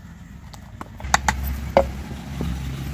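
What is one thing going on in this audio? A clay lid clunks onto a clay pot.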